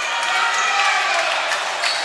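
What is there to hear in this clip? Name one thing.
A basketball bounces on a wooden floor as a player dribbles.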